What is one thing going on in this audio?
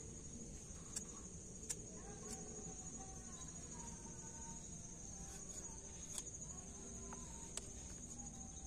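Pruning shears snip through roots with sharp clicks.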